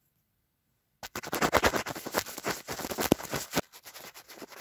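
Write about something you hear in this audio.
Fingers rub and scratch right against a microphone.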